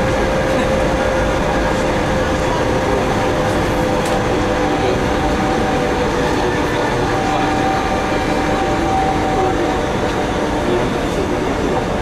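A train rumbles and hums steadily along the tracks.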